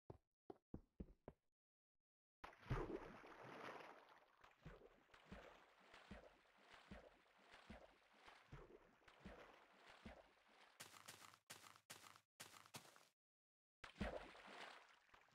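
Water splashes and sloshes as a swimmer paddles.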